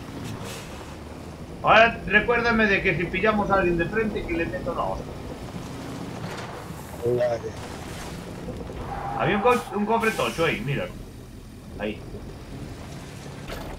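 A truck engine rumbles steadily as the truck drives.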